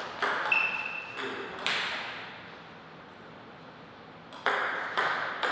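A ping-pong ball clicks sharply back and forth off paddles and a table.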